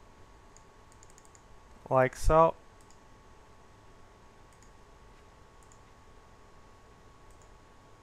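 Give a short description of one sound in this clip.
A computer mouse clicks softly.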